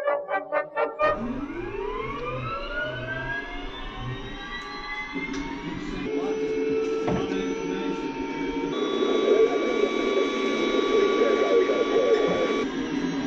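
A helicopter engine whines, rising in pitch as it starts up and then running steadily.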